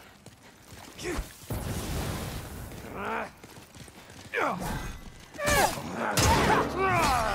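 A creature lets out shrill, sliding screeches.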